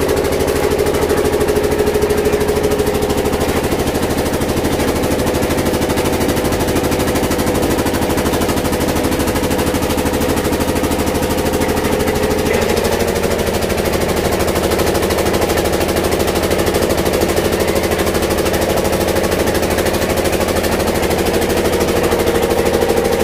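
A machine's engine runs with a loud, steady drone.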